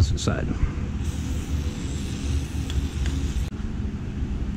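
A spray can hisses.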